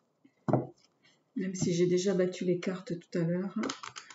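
Playing cards riffle and flutter as they are shuffled by hand.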